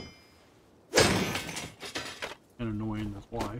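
A blade strikes a metal barrel with a clang.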